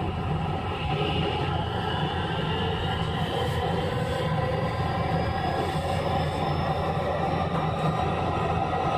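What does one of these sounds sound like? An electric train hums and whines steadily nearby.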